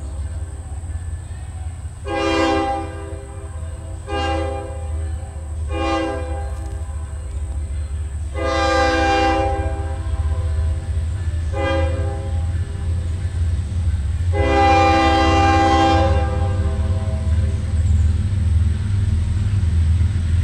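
A locomotive engine rumbles low and steadily as a train approaches.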